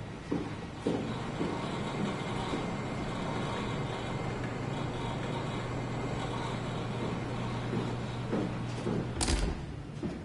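A computer hums with a low, steady drone.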